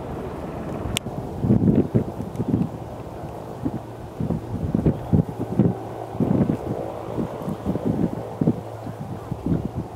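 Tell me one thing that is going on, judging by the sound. A jet plane's engines roar low as the plane approaches.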